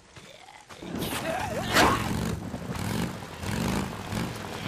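A motorcycle engine rumbles and rides off.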